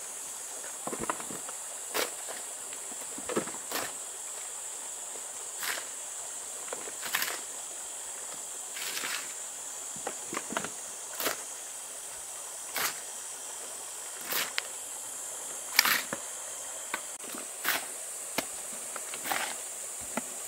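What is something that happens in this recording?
A hoe scrapes and chops into dry soil.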